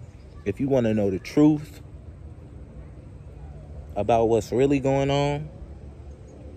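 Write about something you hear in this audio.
A young man speaks casually, close to the microphone, in short phrases.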